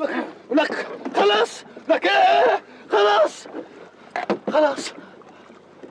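A man shouts loudly nearby, outdoors.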